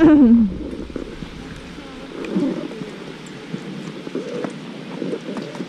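Skis hiss and scrape over snow close by.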